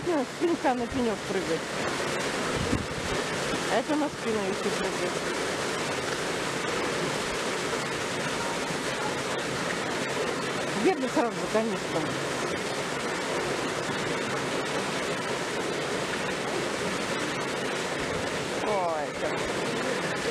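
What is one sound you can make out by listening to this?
Water splashes steadily into a pool.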